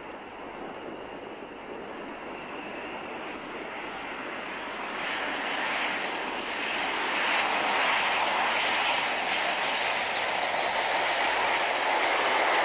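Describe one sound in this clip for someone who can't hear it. A formation of jet trainers roars as it flies in low, growing louder.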